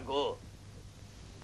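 A man speaks briefly and sharply.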